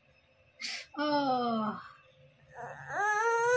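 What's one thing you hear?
A young woman speaks to a child close by in a sing-song voice.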